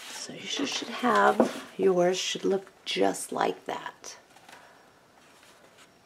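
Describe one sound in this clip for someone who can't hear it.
Stiff pages of a book flip and flutter.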